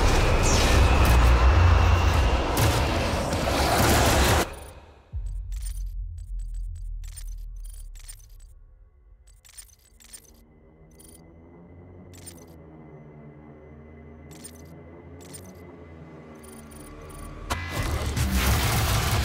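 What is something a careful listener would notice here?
Heavy gunfire and explosions roar loudly.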